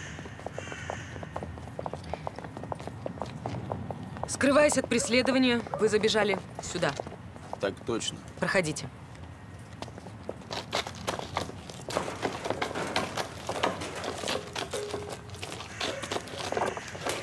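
Footsteps scuff on wet pavement outdoors.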